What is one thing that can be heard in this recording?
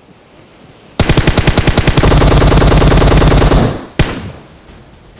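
An automatic rifle fires loud rapid bursts.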